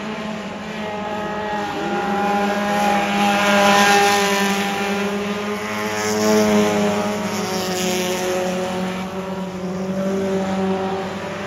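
Race car engines roar loudly as cars speed around.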